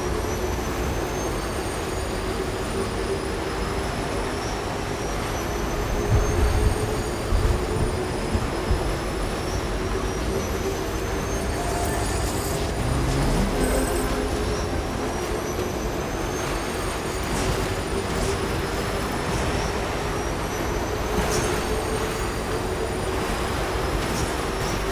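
Snow and gravel crunch under the wheels.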